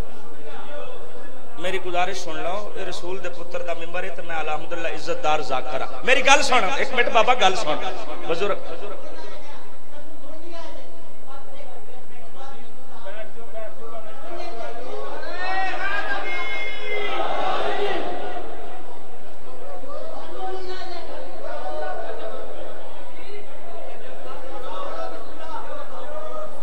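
A man recites loudly and with passion into a microphone, heard through loudspeakers in an echoing hall.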